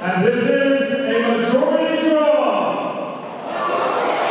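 A man announces loudly over a loudspeaker.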